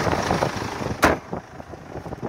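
A car hood slams shut.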